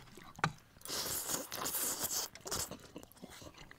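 A young man slurps noodles.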